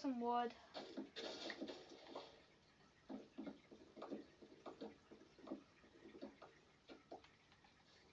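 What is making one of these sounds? Wooden blocks crack and thud as an axe chops at them.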